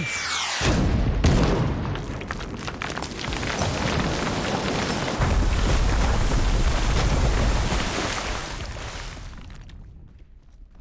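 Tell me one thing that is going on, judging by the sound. A torrent of water rushes and crashes loudly.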